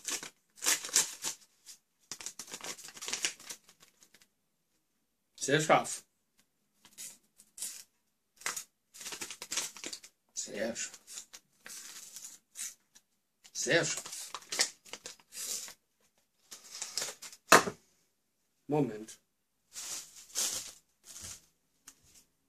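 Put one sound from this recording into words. Paper crinkles and rustles in a man's hands.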